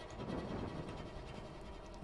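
A torch flame crackles.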